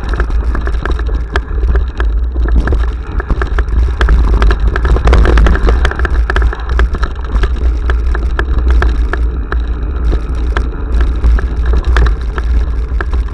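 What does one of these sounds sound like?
Wind buffets a microphone in a low roar.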